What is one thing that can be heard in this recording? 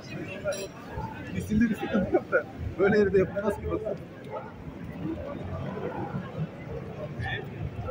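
A crowd of people chatters in a busy street outdoors.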